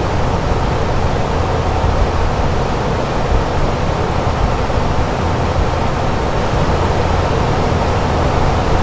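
Jet engines and rushing air roar steadily.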